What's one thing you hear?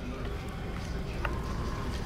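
A fire crackles nearby.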